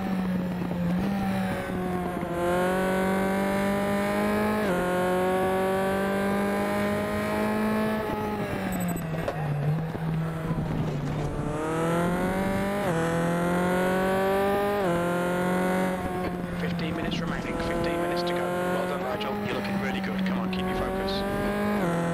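A racing car engine roars, rising in pitch through each gear and dropping sharply at every gear change.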